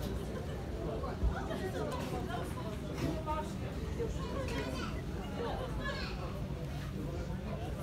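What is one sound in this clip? Many sheep bleat in a crowded pen.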